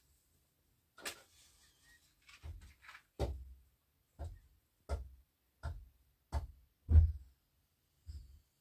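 A woman thumps something with dull, regular knocks.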